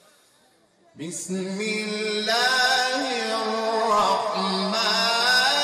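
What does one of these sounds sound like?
A man chants loudly and melodically through a microphone and loudspeakers.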